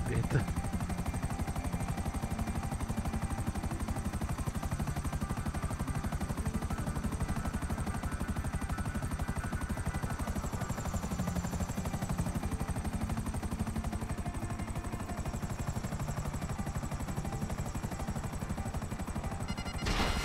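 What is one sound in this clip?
Helicopter rotor blades thump rapidly and steadily overhead.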